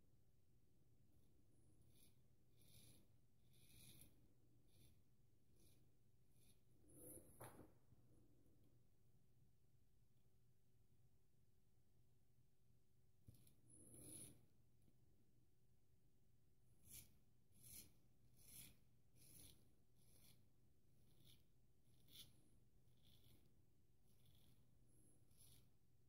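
A straight razor scrapes through stubble in short strokes, close by.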